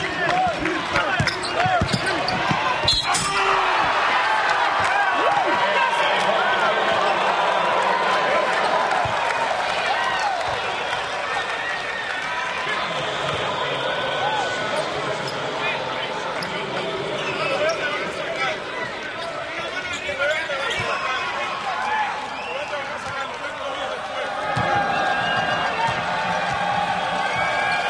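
A crowd cheers and chatters throughout a large echoing arena.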